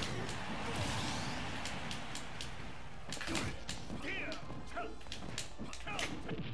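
Video game punches and kicks land with sharp cracks and thuds.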